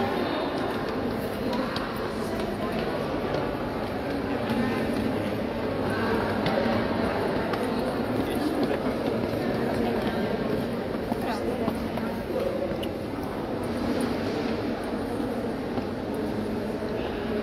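Footsteps climb hard stone stairs.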